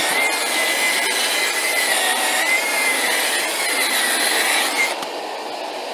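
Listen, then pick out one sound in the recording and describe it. A power polisher whines steadily as it spins against a hard surface.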